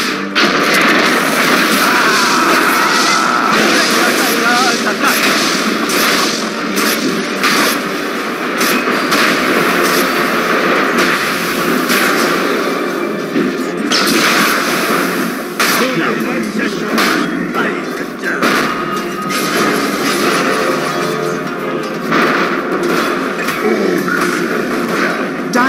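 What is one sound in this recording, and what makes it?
Magic spells crackle and burst amid clashing battle sounds.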